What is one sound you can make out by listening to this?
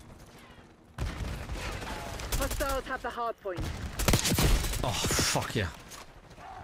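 Gunfire bursts crack out in quick succession.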